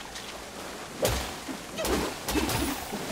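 Water splashes as someone wades in.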